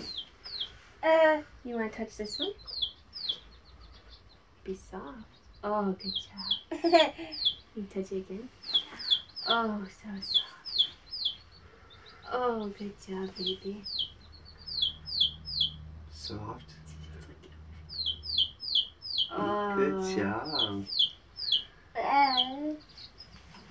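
A young woman speaks softly and warmly up close.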